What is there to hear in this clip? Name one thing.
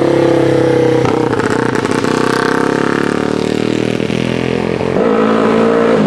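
A vintage racing motorcycle engine roars past.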